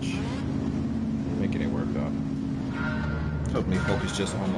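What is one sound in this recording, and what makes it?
Racing car engines idle and rumble.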